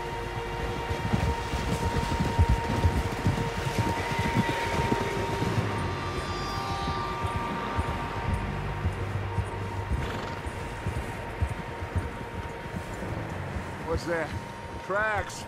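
Horses' hooves thud softly through deep snow.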